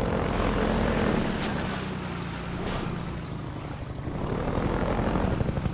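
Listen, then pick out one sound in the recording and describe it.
A buggy engine rumbles and revs steadily.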